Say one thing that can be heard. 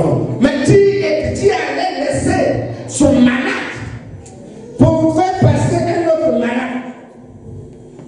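A man preaches loudly and with animation in a room with some echo.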